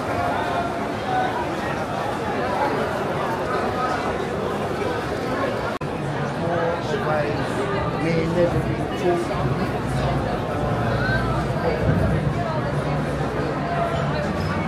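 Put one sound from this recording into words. A crowd of people chatters in a busy, echoing indoor space.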